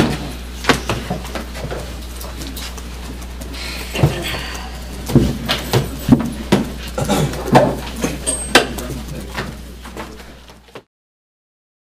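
Papers rustle and shuffle close by.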